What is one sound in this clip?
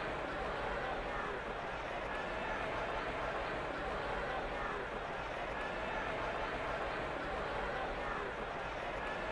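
A large crowd roars and cheers steadily in a stadium.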